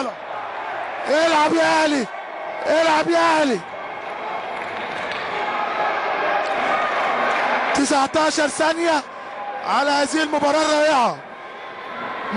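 A crowd murmurs and cheers steadily in the background.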